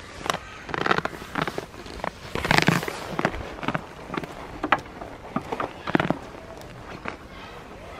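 Goats sniff and snuffle close by.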